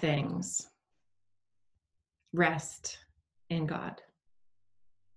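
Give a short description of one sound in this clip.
A woman speaks calmly and close to a microphone, in short phrases with pauses.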